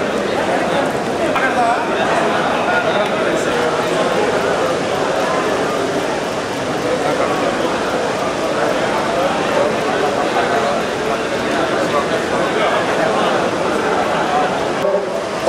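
A crowd of men murmurs and chatters in a room.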